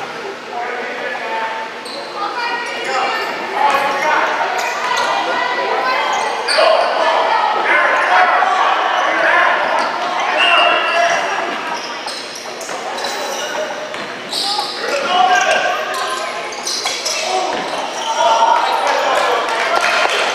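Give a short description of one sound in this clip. Young players and spectators shout and cheer nearby.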